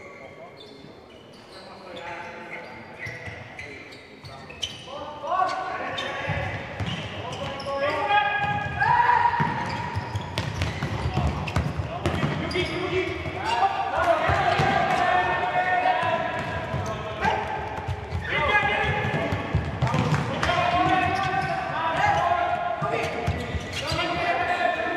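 A ball is kicked with dull thumps in a large echoing hall.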